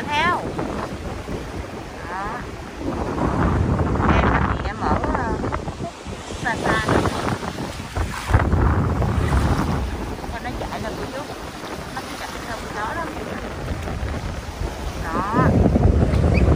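Small waves wash up onto the sand.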